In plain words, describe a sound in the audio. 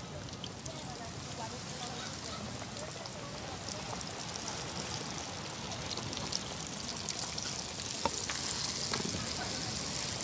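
Meat drops into hot oil with a loud hiss.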